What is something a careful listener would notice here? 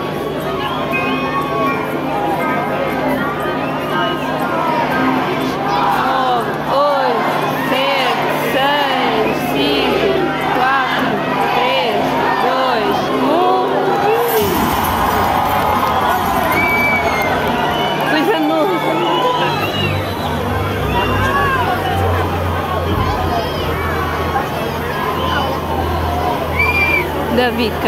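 A large crowd cheers and screams loudly in a big echoing venue.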